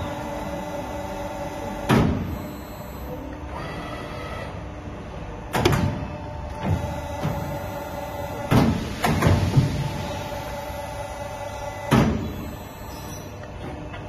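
A CNC pipe bending machine hums as it bends a steel pipe.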